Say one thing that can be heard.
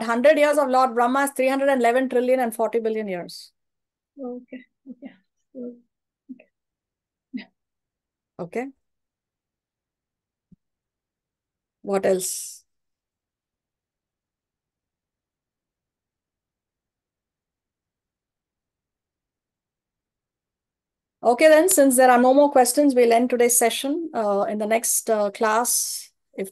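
A woman chants melodically, heard through an online call.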